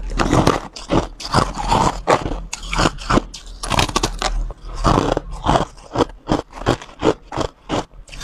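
Ice crackles and rustles in a plastic container.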